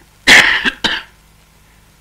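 An elderly woman blows her nose loudly.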